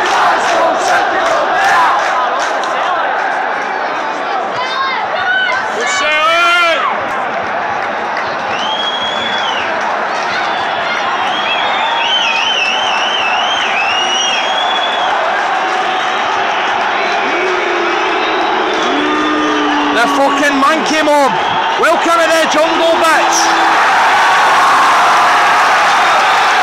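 A large stadium crowd roars and cheers throughout, in a vast open space.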